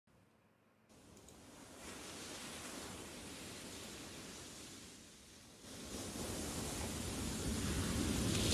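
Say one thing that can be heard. A young woman sings softly into a microphone.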